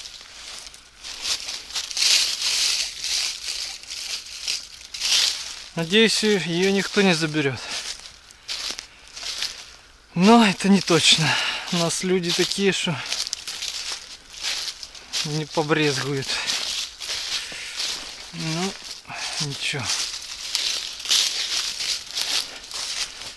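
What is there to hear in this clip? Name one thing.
Footsteps crunch and rustle through dry fallen leaves.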